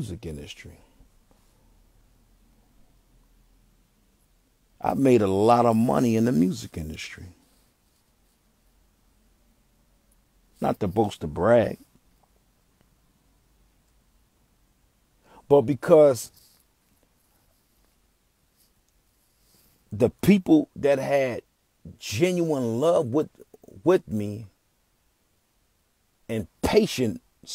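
A young man sings close by in short bursts, with pauses in between.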